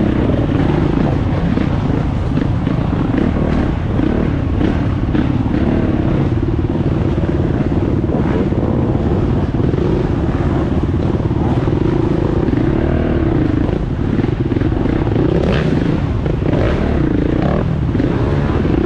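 A dirt bike engine idles and revs roughly up close.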